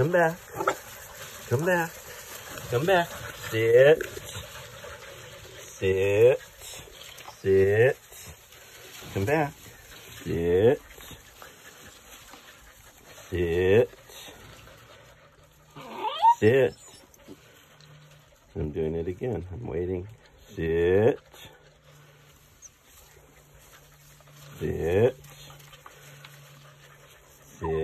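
Puppies whine and yelp loudly, close by.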